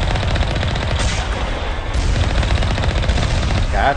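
Explosions boom as shots hit a vehicle.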